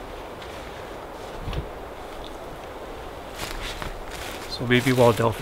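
Footsteps crunch on dry forest leaves.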